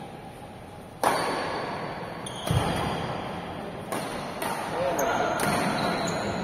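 Rackets hit a shuttlecock with sharp smacks in a large echoing hall.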